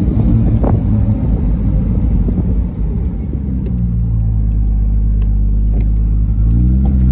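An old car's engine rumbles steadily and revs up near the end.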